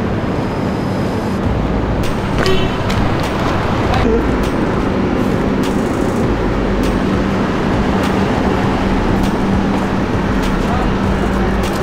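Footsteps walk on pavement outdoors.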